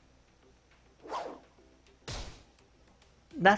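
Quick whooshes sweep past.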